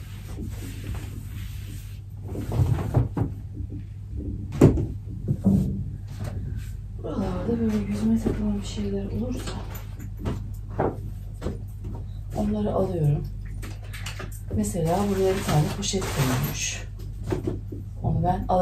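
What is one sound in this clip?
Items rustle and knock as a woman rummages through a cupboard.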